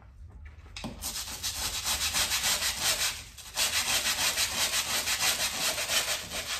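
A hand sprayer puffs in rapid, steady bursts.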